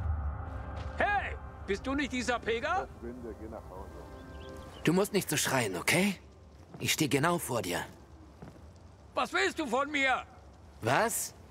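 A man speaks in a low, guarded voice close by.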